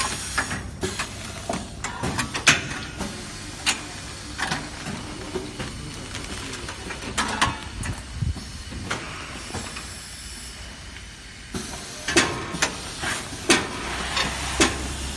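A packaging machine clanks and clicks in a steady working rhythm.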